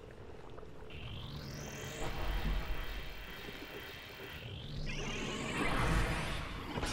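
A rising whoosh sweeps upward.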